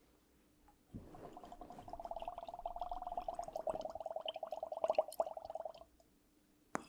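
Water trickles into a small glass bottle, gurgling and rising in pitch as it fills.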